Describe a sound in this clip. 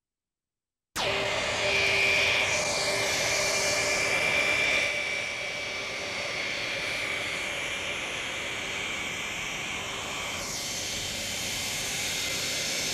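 A jet airliner's engines whine and roar as it taxis.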